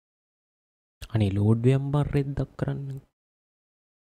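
A young man speaks with animation, close to a microphone.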